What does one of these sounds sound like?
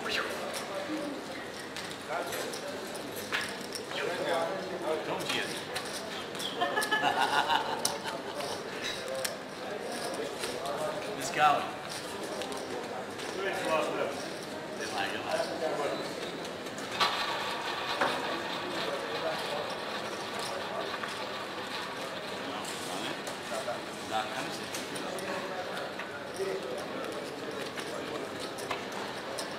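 Several people murmur and talk nearby.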